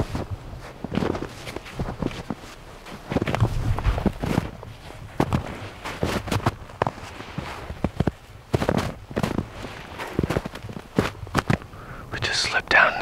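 Boots crunch through snow in steady footsteps.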